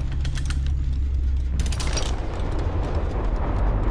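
A metal trap clanks as its jaws are pried open.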